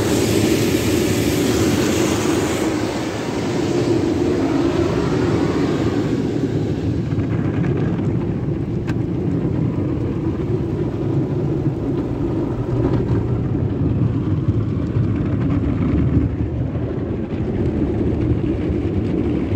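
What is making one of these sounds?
Water sprays and drums against a car's windows.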